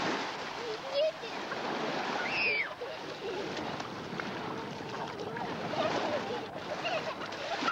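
Children's feet splash through shallow water.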